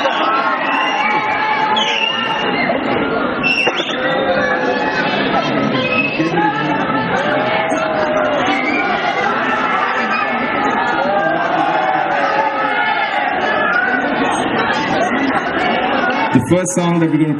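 A man sings into a microphone.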